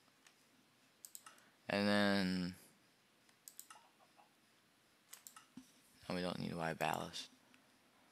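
A game menu button clicks several times.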